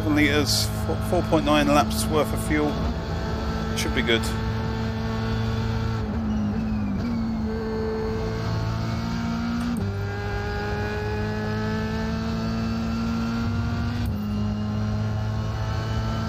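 A racing car engine whines at high revs, dropping and rising in pitch with gear changes.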